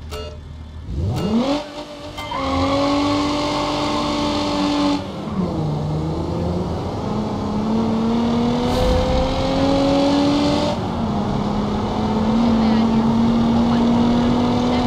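A car engine revs up and roars as the car speeds along.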